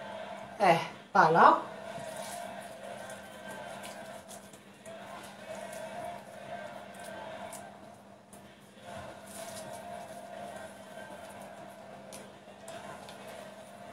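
Hands press soft dough and minced meat.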